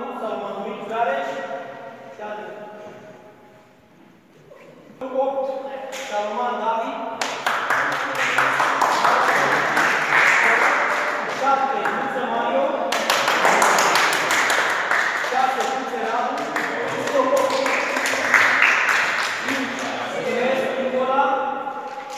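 A man announces loudly in an echoing hall.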